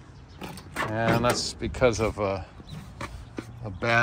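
A car door latch clicks and the door swings open.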